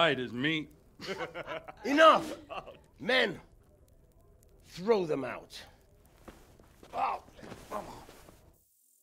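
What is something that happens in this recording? An elderly man shouts angrily.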